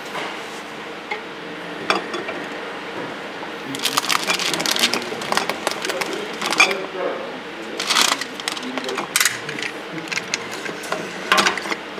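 A labelling machine clicks and clacks as it is worked by hand.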